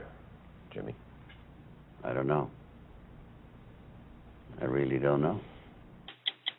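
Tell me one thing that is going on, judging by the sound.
An older man speaks calmly into a nearby microphone, in short bursts.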